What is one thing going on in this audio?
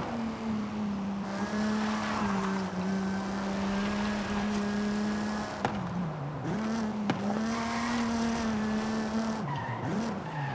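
A car engine hums steadily at high revs, dipping briefly as gears shift.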